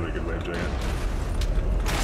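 A heavy gun fires with loud booming blasts.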